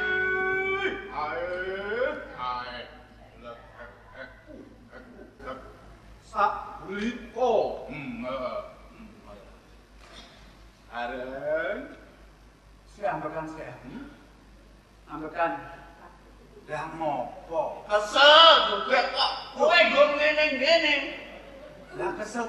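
A man speaks loudly and theatrically, heard through a loudspeaker in a large hall.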